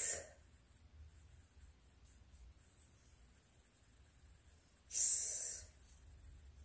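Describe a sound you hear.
A comb scratches through hair.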